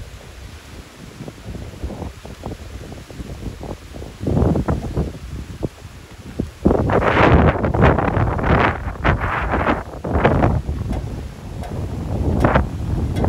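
Palm fronds thrash and rustle in the wind.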